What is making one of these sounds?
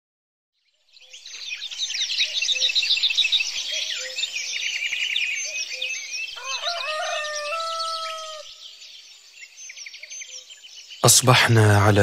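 Several small birds chirp and twitter rapidly.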